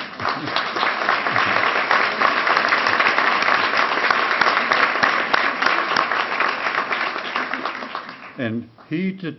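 A large crowd applauds loudly in a hall.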